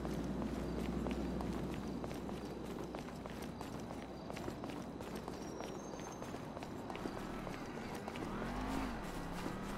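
Footsteps patter quickly on pavement.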